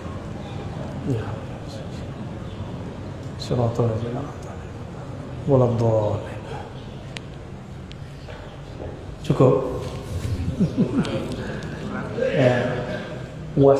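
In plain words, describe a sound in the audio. A young man speaks calmly into a clip-on microphone, with pauses.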